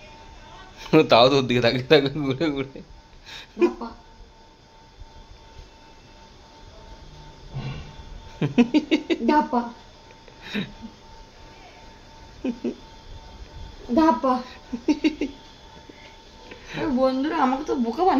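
A young woman talks playfully to a baby up close, in short bursts.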